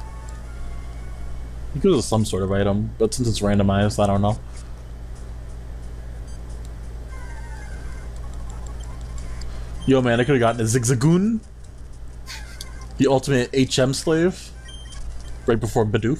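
Retro video game music and beeping sound effects play quietly.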